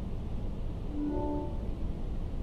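A short electronic chime sounds.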